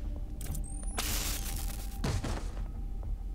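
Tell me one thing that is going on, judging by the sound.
A brief scuffle thumps and scrapes close by.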